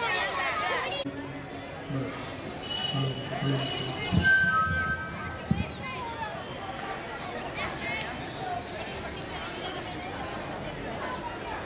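Young children chatter softly outdoors as they walk.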